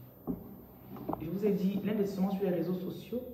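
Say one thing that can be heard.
A woman speaks calmly close to a phone microphone.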